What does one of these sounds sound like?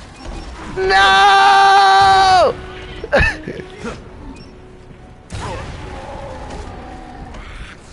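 Footsteps thud on wooden planks of a rope bridge.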